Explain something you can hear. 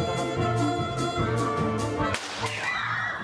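Music plays in a large hall and stops.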